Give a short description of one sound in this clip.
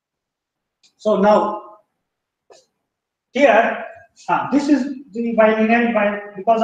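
A man lectures through a microphone, speaking calmly.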